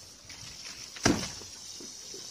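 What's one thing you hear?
A plastic barrel thumps as it is tipped over.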